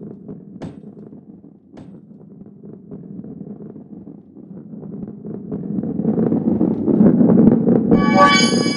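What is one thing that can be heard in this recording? A ball rolls along a wooden track with a low rumble that grows louder.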